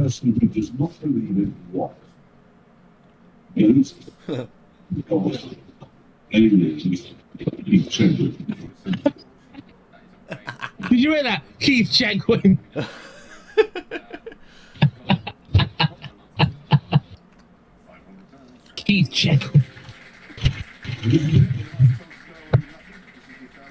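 A man talks casually into a microphone, in bursts with pauses.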